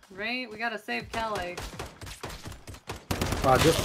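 Rapid gunfire cracks nearby.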